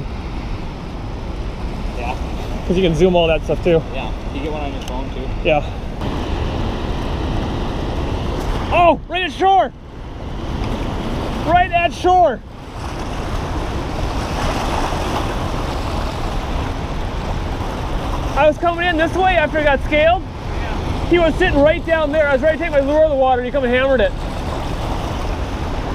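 Fast water rushes and churns over stones nearby.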